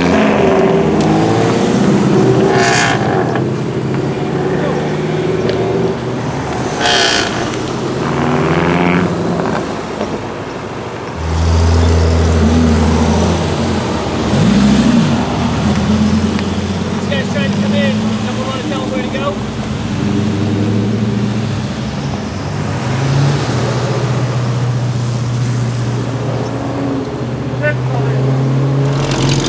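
Sports car engines rumble and rev as cars pull away one after another.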